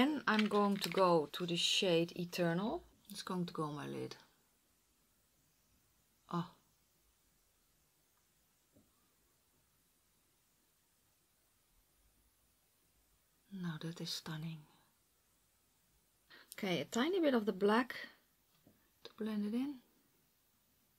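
A woman talks calmly and close to a microphone, in short bursts with pauses.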